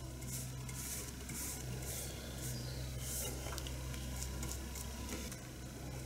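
A paintbrush brushes softly against wood.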